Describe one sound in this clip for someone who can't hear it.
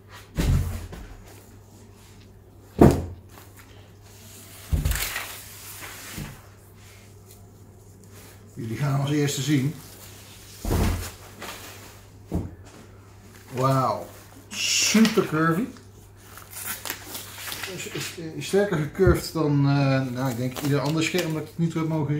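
A plastic bag crinkles and rustles as a man handles it.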